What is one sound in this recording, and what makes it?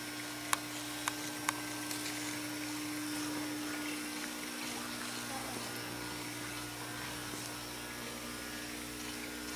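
A small model plane's propeller whirs softly overhead in a large echoing hall.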